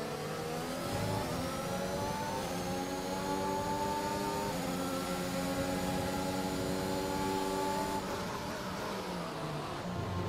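A racing car engine screams at high revs, rising through each gear and dropping at every shift.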